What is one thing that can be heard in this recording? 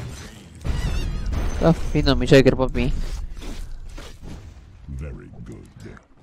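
Game sound effects clash and whoosh.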